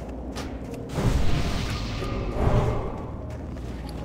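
A magical burst whooshes and crackles loudly.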